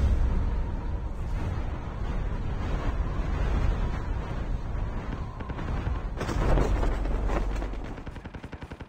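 Wind rushes loudly past during a fast parachute descent.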